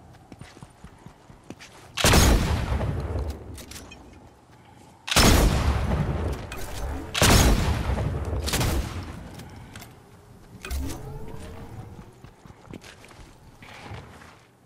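Footsteps patter on grass and dirt.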